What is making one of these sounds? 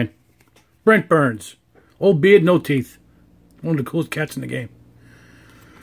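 Trading cards slide against each other as they are shuffled.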